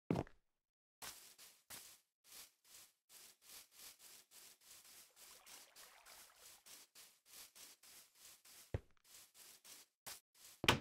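Footsteps thud steadily on dirt and grass.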